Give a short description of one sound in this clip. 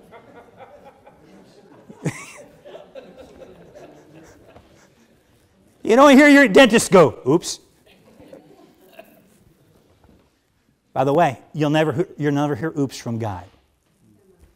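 A middle-aged man preaches with animation through a microphone in a large echoing hall.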